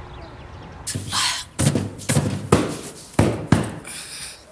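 A woman beats cushions with dull thumps.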